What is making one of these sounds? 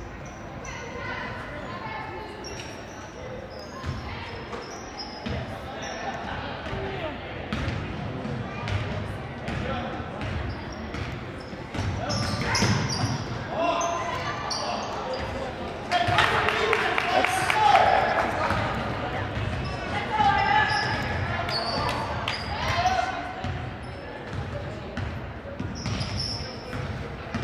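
Spectators and players shout and cheer in an echoing gym.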